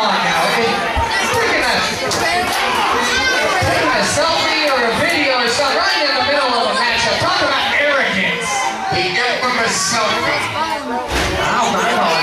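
Wrestlers thud on a ring mat.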